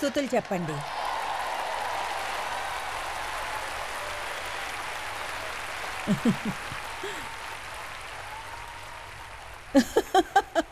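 A large audience laughs and claps in a big hall.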